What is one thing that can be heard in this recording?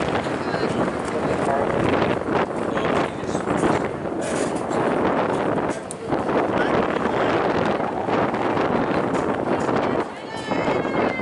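A crowd of people chatter and cheer outdoors.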